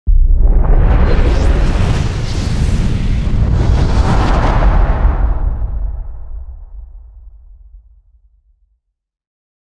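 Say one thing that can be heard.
A huge explosion booms and rumbles, then slowly fades away.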